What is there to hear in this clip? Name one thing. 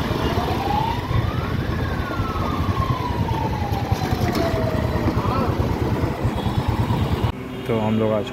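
A motorcycle engine roars as it rides along.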